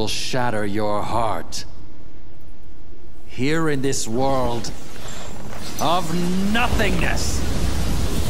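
A young man speaks dramatically, with a taunting tone.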